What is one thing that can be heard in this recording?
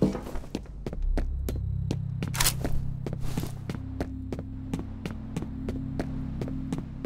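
Footsteps walk steadily on hard concrete.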